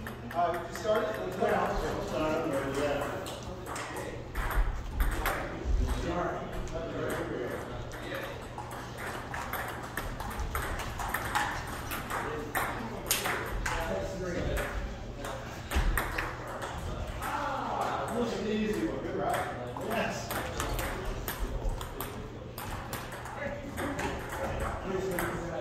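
Ping pong balls click sharply off paddles and tables in quick rallies.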